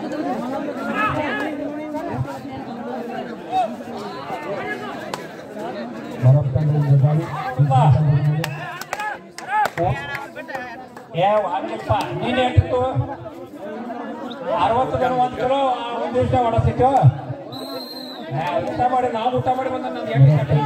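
A crowd cheers and shouts loudly in a large echoing arena.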